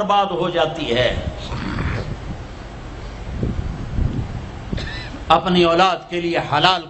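An elderly man preaches with animation through a microphone and loudspeakers.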